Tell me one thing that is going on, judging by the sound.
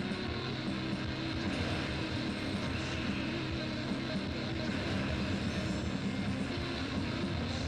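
Game sound effects chime and burst as gems clear.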